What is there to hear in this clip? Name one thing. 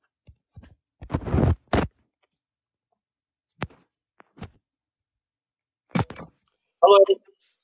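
A young man speaks briefly, close to the microphone.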